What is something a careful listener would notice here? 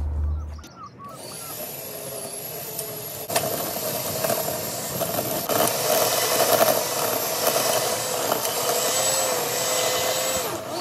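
An electric tiller whirs steadily and churns the soil.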